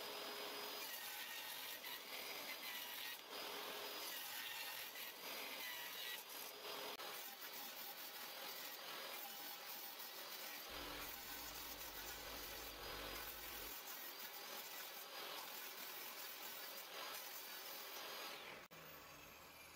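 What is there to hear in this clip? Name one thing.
A table saw whirs loudly as it cuts through wood.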